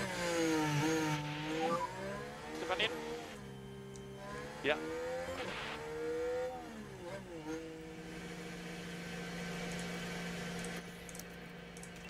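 A racing car engine whines and changes pitch as it speeds up and slows down.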